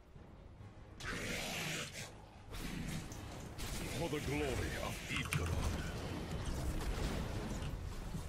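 Fantasy battle sounds of spells and blasts crackle in a game.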